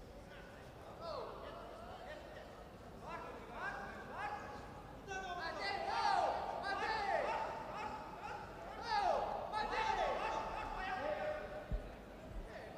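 Spectators shout encouragement across a large echoing hall.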